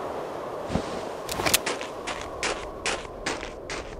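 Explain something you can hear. A rifle is put away with a metallic clack.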